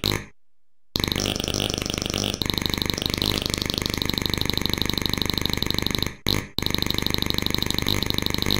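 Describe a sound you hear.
A buzzing electronic game tune plays steadily.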